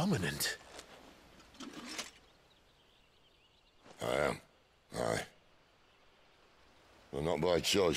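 A man speaks in a low, wry voice with pauses.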